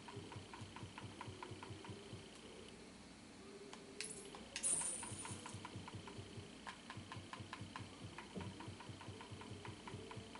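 Soft menu clicks tick as a selection moves through a list.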